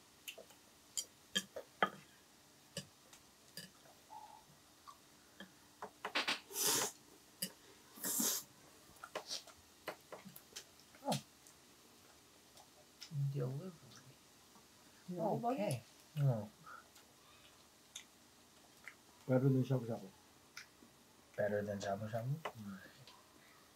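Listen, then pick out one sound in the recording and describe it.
Chopsticks tap lightly against plates and bowls.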